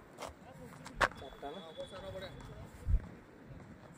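A cricket bat knocks a ball with a sharp crack.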